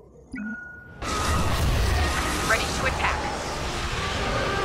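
A starfighter's engine roars loudly as it flies.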